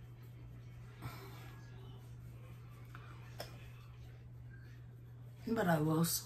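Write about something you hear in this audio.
A makeup brush brushes softly across skin.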